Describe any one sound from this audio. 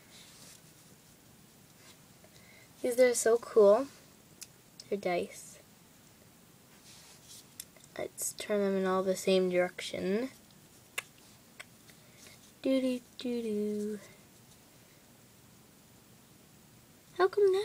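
Foam dice are set down softly on carpet.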